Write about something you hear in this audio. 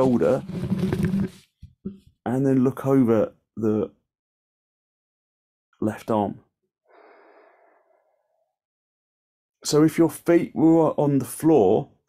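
A man speaks calmly in short phrases nearby.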